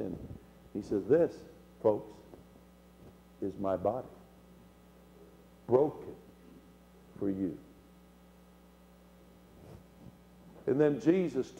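An elderly man speaks with animation into a microphone, in short bursts with pauses.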